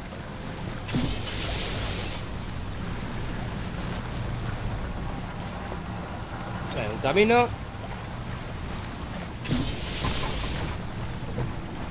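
Water rushes and splashes.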